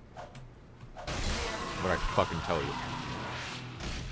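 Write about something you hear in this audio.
A loud explosion bursts with a crackling roar.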